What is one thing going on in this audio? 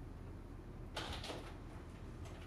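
A door handle clicks.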